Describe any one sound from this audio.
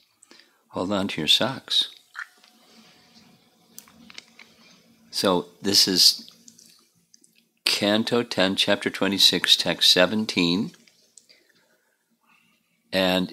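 An elderly man speaks calmly and close into a microphone, with pauses.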